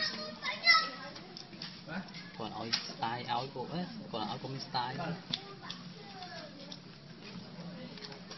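A small monkey cracks and chews a nut close by.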